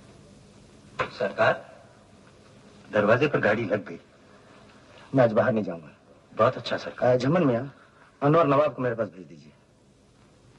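A middle-aged man speaks firmly in a quiet room.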